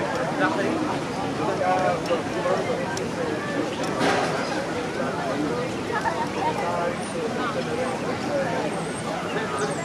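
A bird splashes softly as it wades through shallow water.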